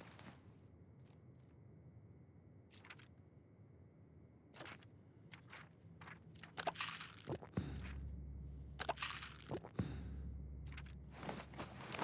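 Items rustle and clatter as someone rummages through a wooden crate.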